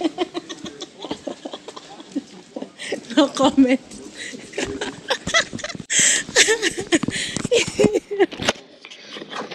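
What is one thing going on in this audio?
A woman laughs loudly close by.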